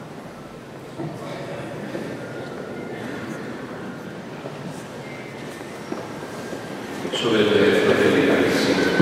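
A man reads out through a microphone in a large echoing hall.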